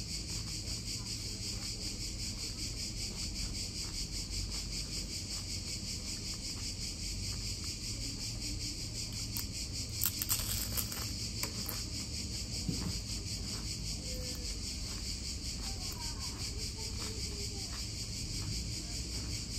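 A young woman chews food noisily close by.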